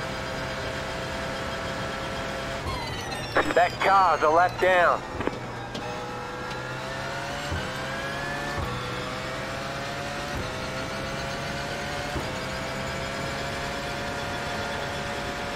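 A racing car engine whines at high revs, drops sharply and then climbs again through the gears.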